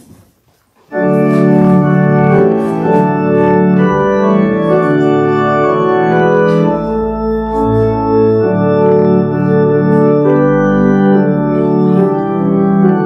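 A congregation sings a hymn together.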